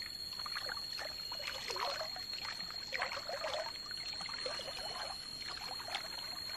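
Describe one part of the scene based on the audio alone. A shallow stream trickles steadily.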